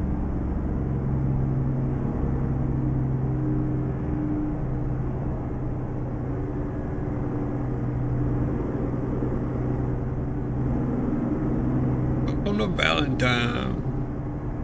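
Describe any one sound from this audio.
A truck engine hums steadily with a low drone.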